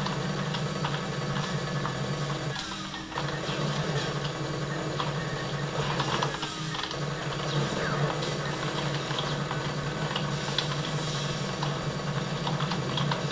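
Gunfire and explosions from a video game play through speakers.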